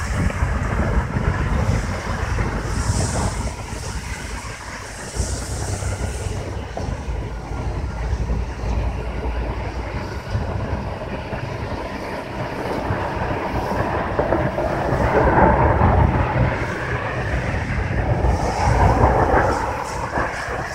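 A fire roars and crackles steadily outdoors.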